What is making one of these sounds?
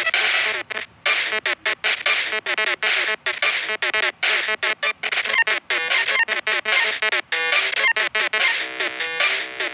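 Rapid electronic bleeps chime as slot reels spin.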